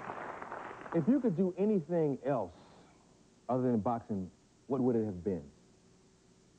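A man speaks with animation into a handheld microphone.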